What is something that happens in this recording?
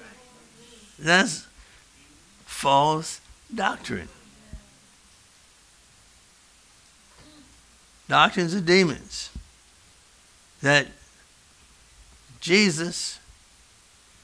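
An older man preaches with animation in short bursts, heard through a microphone in an echoing room.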